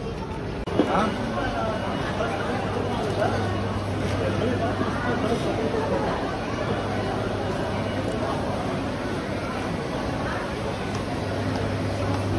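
Shopping cart wheels rattle over a hard floor.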